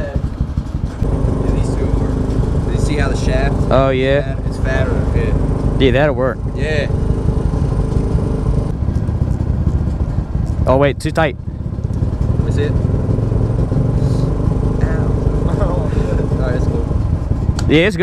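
A motorbike engine idles steadily.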